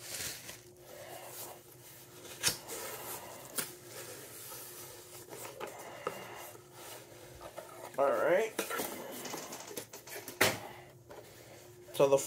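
Cardboard rustles and scrapes as a box is opened.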